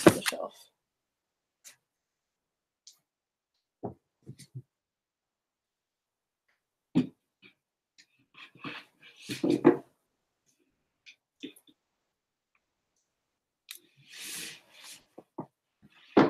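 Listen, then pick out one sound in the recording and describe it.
Books knock and shuffle against a shelf.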